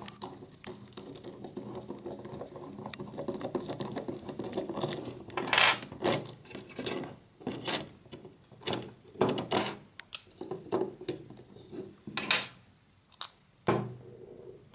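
Plastic parts click and rattle as they are fitted together by hand.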